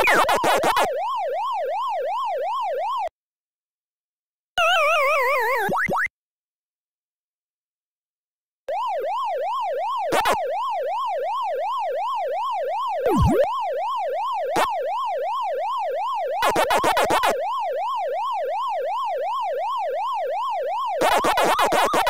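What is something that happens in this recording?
A game's siren tone wails up and down steadily.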